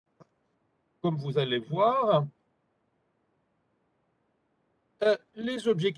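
An older man speaks calmly through an online call.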